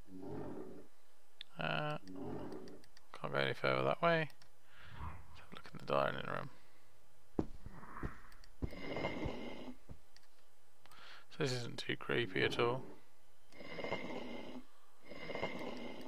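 A young man talks calmly into a nearby microphone.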